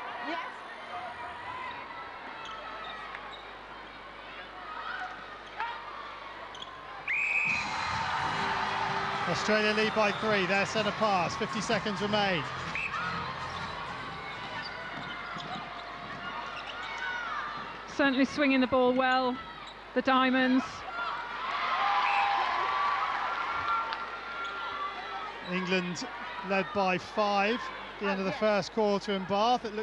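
A large indoor crowd murmurs and cheers in an echoing hall.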